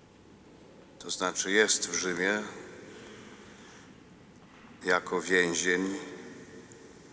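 An elderly man reads aloud slowly through a microphone in a large echoing hall.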